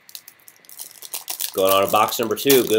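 A foil card pack crackles as it is torn open.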